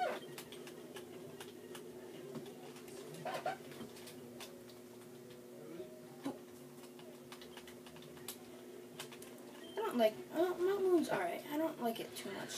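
Chiptune game music plays through a small speaker.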